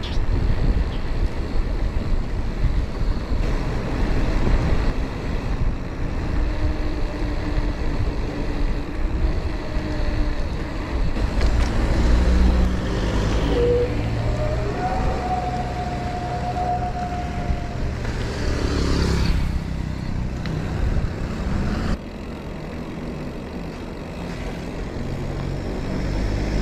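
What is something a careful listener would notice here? Bicycle tyres hiss on the asphalt.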